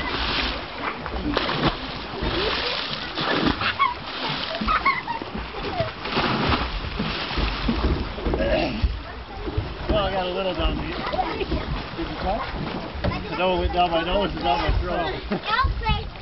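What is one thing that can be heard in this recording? Water splashes loudly close by.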